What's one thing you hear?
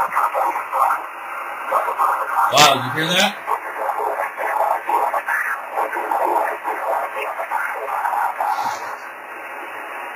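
A man talks over a radio loudspeaker, thin and crackly.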